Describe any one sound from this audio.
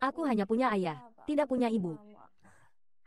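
A young woman speaks in a high, upset voice close by.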